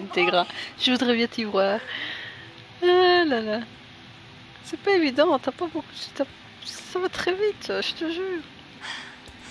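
A young woman speaks nervously, close by.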